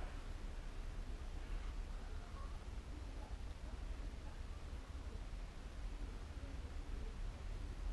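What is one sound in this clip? Liquid pours from a jug into a cup.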